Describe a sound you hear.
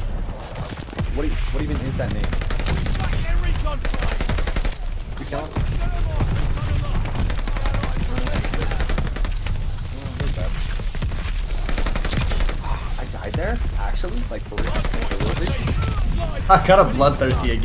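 Rapid gunfire rattles from a game.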